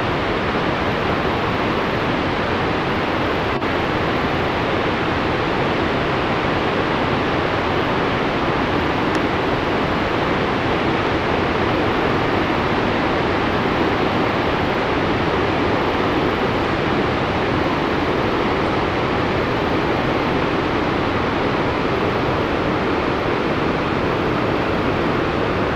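Huge waterfalls roar in a steady, deep rush.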